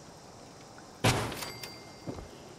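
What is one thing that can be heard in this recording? A heavy metal cooking stand thuds into place.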